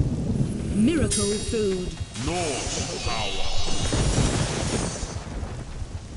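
A magical spell rings out with a shimmering hum.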